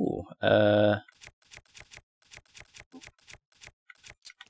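Soft menu clicks tick quickly, one after another.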